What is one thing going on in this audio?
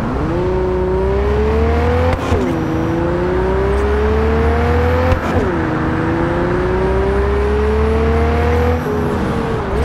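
A car engine revs up, rising in pitch and dropping with each gear change.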